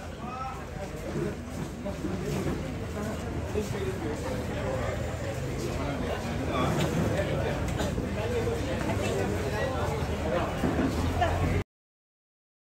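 A crowd of people chatter nearby in a large hall.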